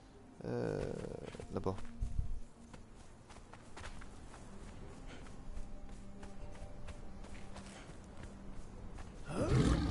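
Footsteps run quickly over sand.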